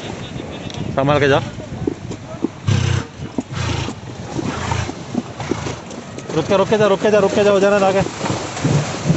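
A man talks nearby, outdoors.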